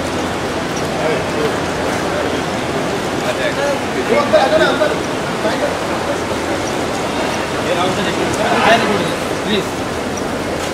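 Men call out and talk excitedly nearby.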